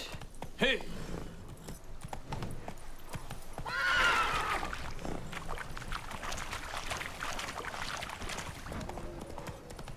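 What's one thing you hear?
A horse's hooves thud at a gallop.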